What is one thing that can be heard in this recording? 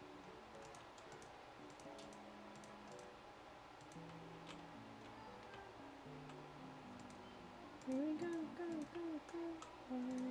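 Blocks are placed with soft, quick clicks.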